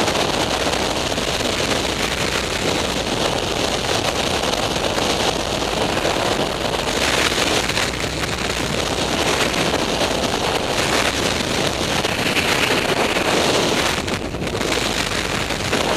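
Strong wind roars loudly and steadily past a microphone in free fall.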